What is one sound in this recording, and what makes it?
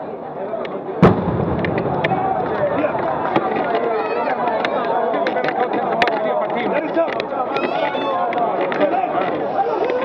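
A large crowd cheers and claps loudly.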